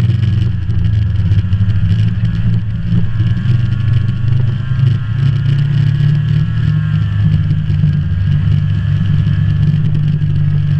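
A snowmobile engine drones at speed, heard up close from the driver's seat.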